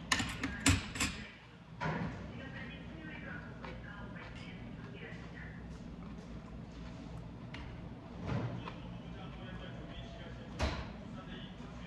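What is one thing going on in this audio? A spoon clinks against a stone bowl.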